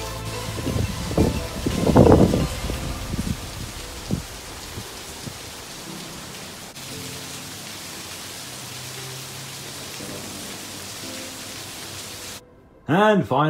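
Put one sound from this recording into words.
Steady rain falls and splashes on the pavement outdoors.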